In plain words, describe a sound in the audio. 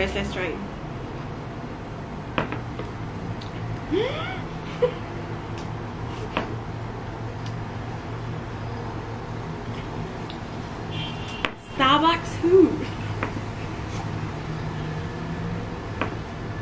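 A young woman sips a drink with a slurp.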